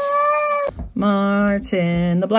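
Cats yowl low and long while fighting outdoors.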